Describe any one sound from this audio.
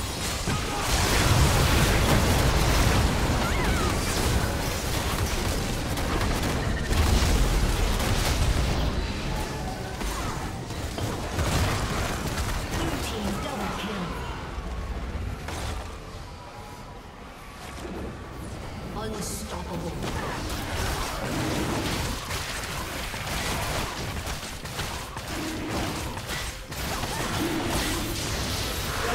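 Spell effects whoosh, crackle and clash in a game battle.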